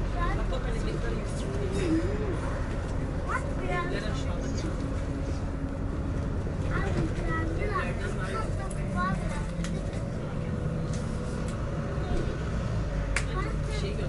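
A bus engine hums steadily as the bus drives along a road.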